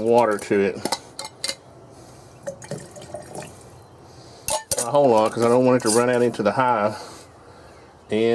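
A metal lid grinds as it is screwed onto a glass jar.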